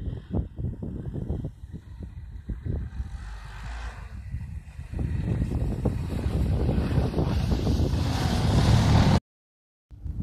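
A snowmobile engine approaches, growing to a loud roar as it passes close by.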